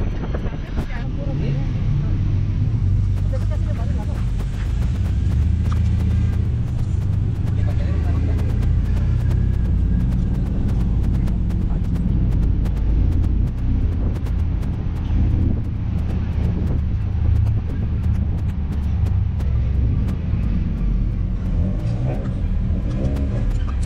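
A car engine rumbles low and steady while driving along a street.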